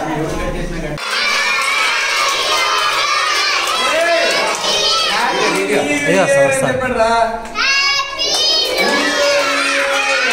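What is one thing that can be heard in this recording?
A group of young children sings together in high voices.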